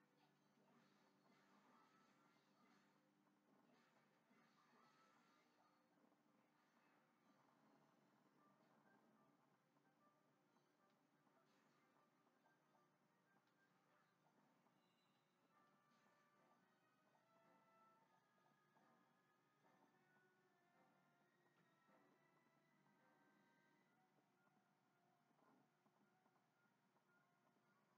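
Video game music plays quietly through a television speaker.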